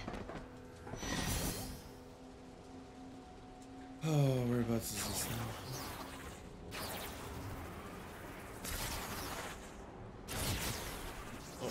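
Crackling energy blasts whoosh in bursts.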